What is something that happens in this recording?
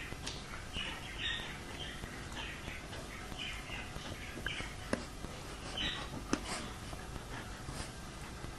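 A dog sniffs and snuffles close by.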